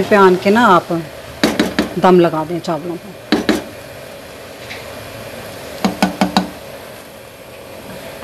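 A spatula scrapes and stirs rice in a metal pot.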